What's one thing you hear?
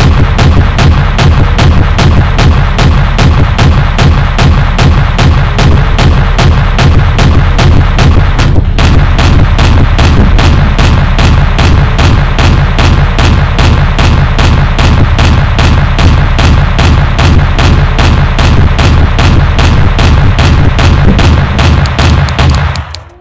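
Heavy twin guns fire in rapid, steady bursts.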